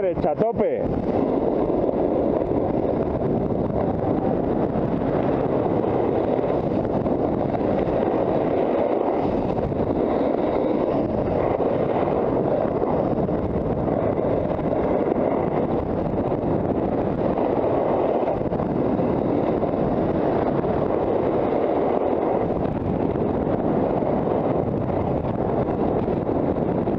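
Snowboard edges scrape and hiss over packed snow.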